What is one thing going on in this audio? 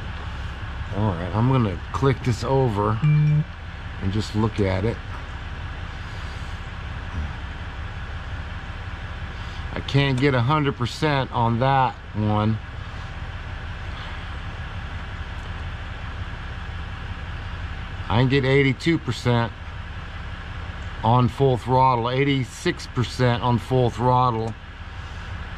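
A middle-aged man talks calmly close to the microphone, in short bursts with pauses.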